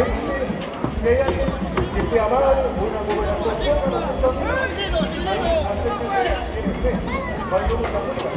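A crowd shouts and cheers.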